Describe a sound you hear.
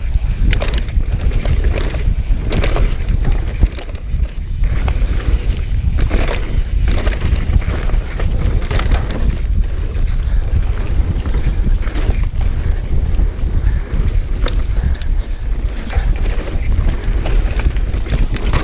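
Wind rushes loudly and steadily past.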